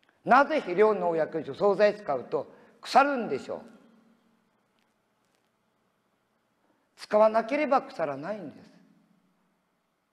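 An elderly man speaks calmly in short phrases, close by.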